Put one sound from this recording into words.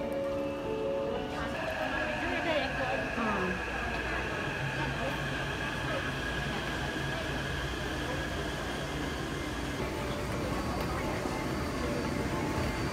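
A crowd murmurs in a large echoing station.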